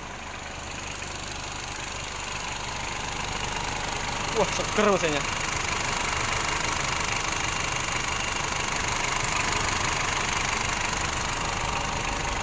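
A car engine idles with a steady, close rumble.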